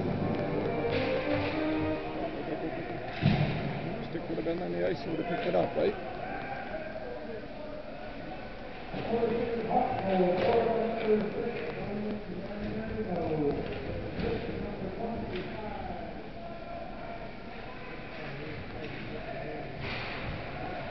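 Hockey sticks clack against a puck, with sharp knocks echoing in a large hall.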